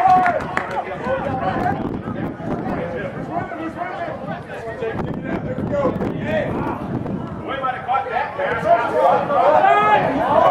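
Spectators call out and cheer from the sideline.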